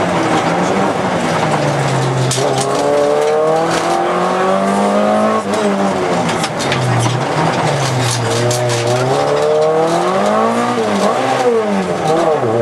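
A car engine roars loudly from inside the cabin, rising and falling in pitch as the driver shifts gears.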